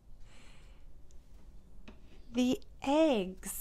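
A small plastic toy taps down on a wooden tray.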